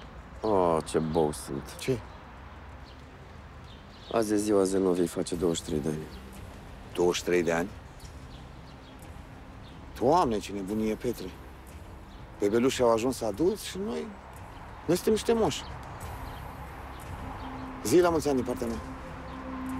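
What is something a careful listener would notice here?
A middle-aged man speaks calmly and quietly nearby.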